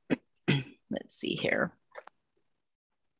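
A second woman talks briefly over an online call.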